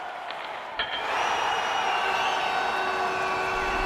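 A goal horn blares loudly.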